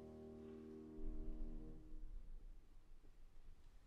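A grand piano plays slow, ringing chords.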